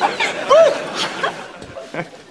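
A young woman laughs close by.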